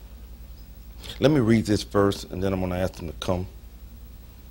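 A man speaks calmly into a microphone, reading out.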